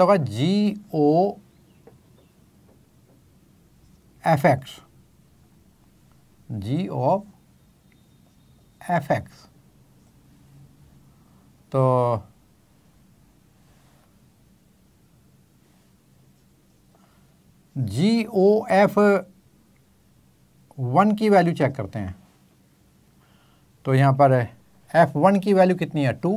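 An elderly man speaks calmly in short bursts, close to a microphone, with pauses between.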